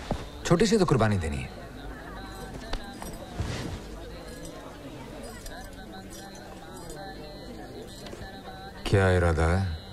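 A man speaks close by, with feeling.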